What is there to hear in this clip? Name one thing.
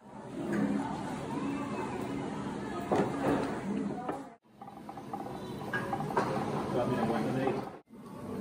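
A pot of stew bubbles and simmers.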